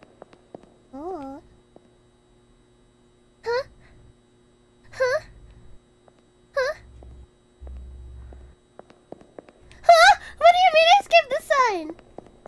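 A young woman speaks into a microphone in short, high-pitched, animated bursts.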